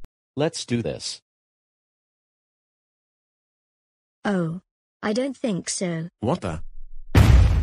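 A man speaks in short, animated bursts.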